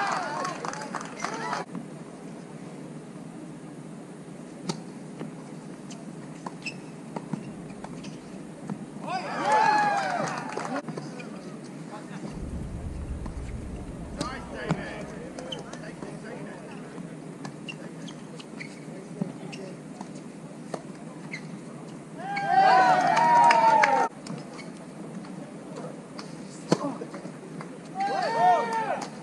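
Men shout and cheer nearby.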